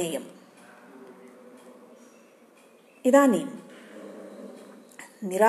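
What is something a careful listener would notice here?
An elderly woman speaks calmly and close up, in short bursts.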